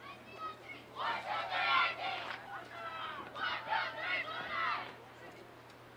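A team of young players shouts a cheer together in the distance, outdoors.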